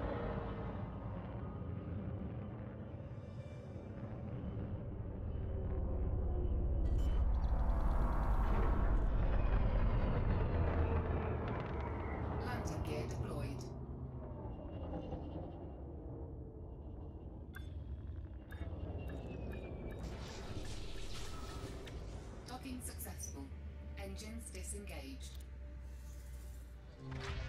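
A spacecraft engine rumbles low, swelling louder and then easing off.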